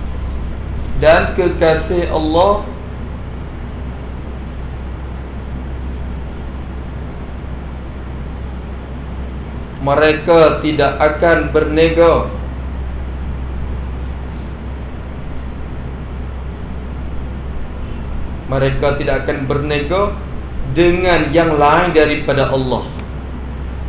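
A man speaks calmly in short phrases with long pauses.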